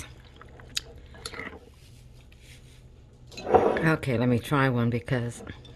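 A spoon stirs and scrapes against a bowl.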